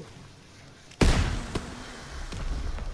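A rifle fires a loud shot.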